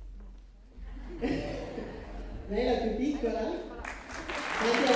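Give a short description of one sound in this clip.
A group of children sing together.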